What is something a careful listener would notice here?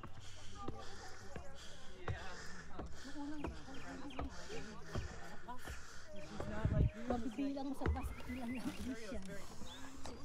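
Women talk casually nearby.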